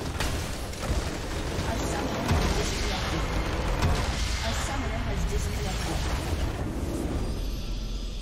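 A magical blast booms and crackles loudly.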